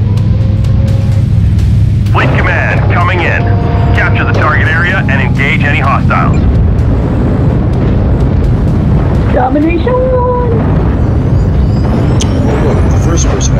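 A heavy machine hums with a steady low rumble.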